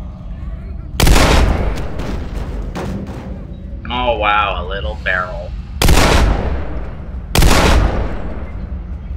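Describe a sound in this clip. Loud gunshots fire one at a time, echoing in an enclosed space.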